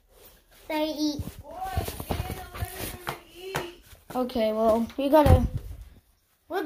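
A boy talks close to the microphone.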